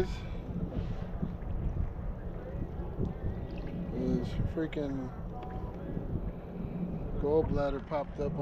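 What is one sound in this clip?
Water laps against a small boat.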